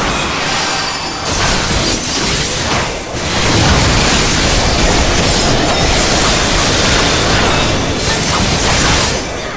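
Sword strikes and magic blasts crash in quick succession.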